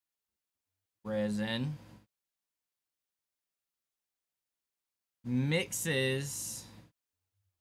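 A man speaks into a microphone in short, animated phrases.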